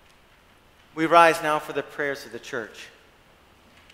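A man sings a short chanted phrase through a microphone in a large echoing hall.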